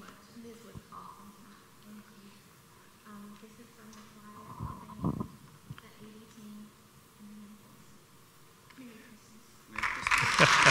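A woman talks calmly at a distance.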